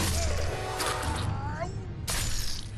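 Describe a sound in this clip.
A man screams in terror.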